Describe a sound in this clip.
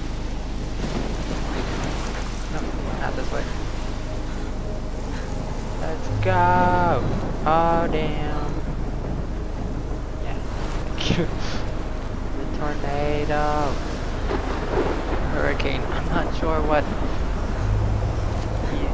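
Strong wind roars steadily.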